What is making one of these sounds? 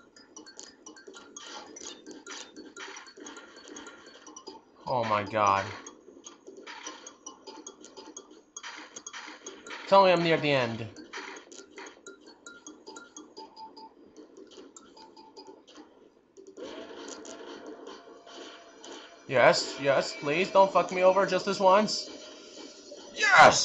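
Upbeat video game music plays throughout.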